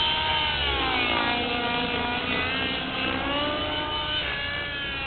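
A helicopter flies overhead with a loud, whining turbine whose pitch slowly shifts as it passes.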